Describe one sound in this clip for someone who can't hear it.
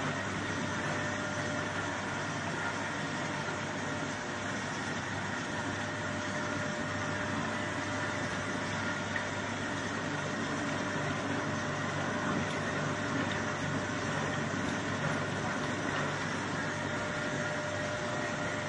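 A machine motor runs with a steady hum.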